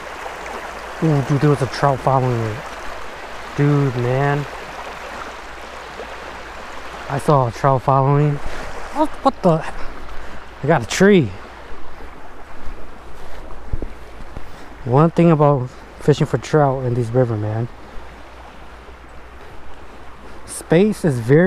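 A man talks close by, calmly and with pauses.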